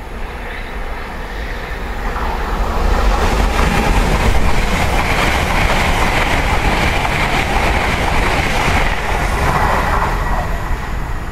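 A high-speed train approaches and roars past close by with a rushing whoosh.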